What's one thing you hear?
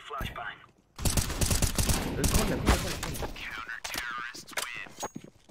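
Rifle shots fire rapidly and loudly.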